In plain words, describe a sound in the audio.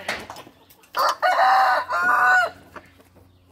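A rooster crows loudly close by.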